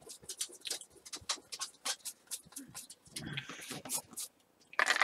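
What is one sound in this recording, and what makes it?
A stiff brush scrubs rapidly across a canvas in short, scratchy strokes.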